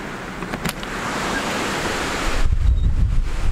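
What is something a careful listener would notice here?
Rain patters against a window.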